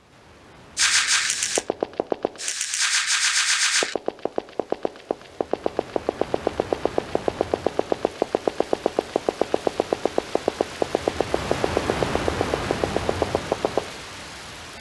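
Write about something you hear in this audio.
Quick, even footsteps tap on a hard floor.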